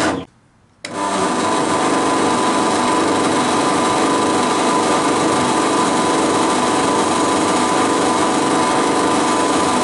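A drill press motor whirs steadily.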